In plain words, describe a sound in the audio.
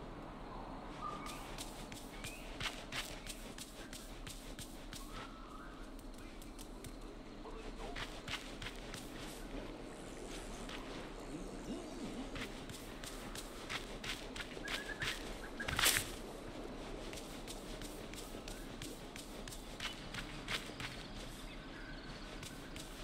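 Light footsteps patter quickly on soft ground.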